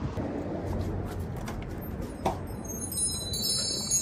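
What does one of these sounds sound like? A door latch clicks as a door is pushed open.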